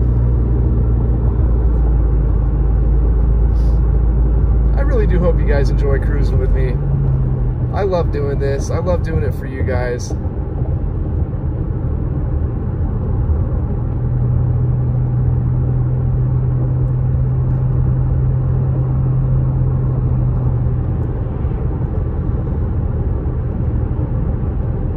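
A car engine hums steadily.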